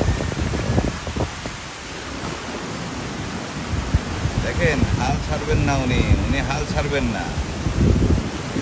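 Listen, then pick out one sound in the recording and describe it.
Wind blows in gusts outdoors.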